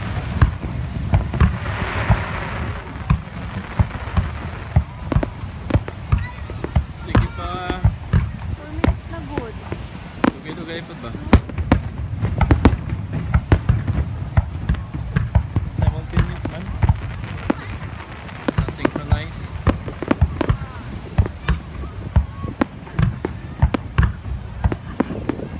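Fireworks boom with deep, rumbling thuds.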